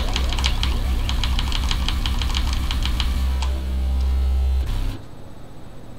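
Upbeat electronic dance music plays loudly, then cuts off.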